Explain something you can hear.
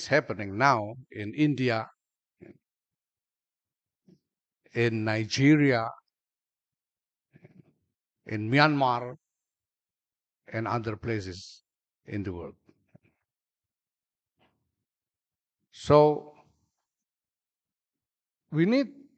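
A middle-aged man speaks slowly and calmly into a microphone, with pauses between phrases.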